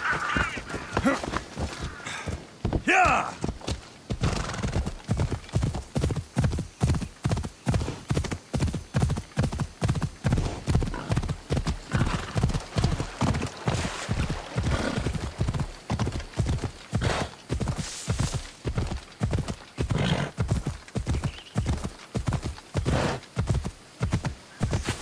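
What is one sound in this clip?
A horse gallops steadily with rhythmic hoofbeats.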